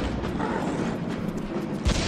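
A rocket whooshes through the air.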